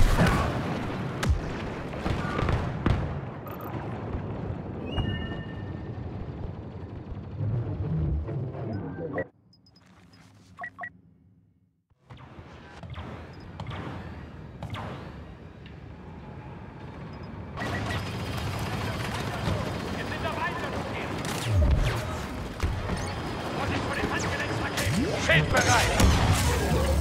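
Blaster fire crackles and zaps in rapid bursts.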